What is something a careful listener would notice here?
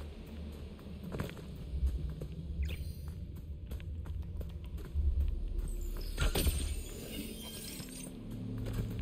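Footsteps patter quickly through grass.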